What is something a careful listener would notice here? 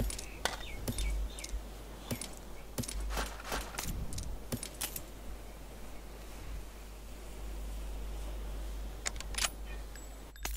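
Short clicking and rustling sounds come as items are picked up in a video game.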